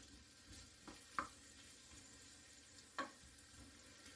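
A wooden spoon scrapes and taps in a frying pan.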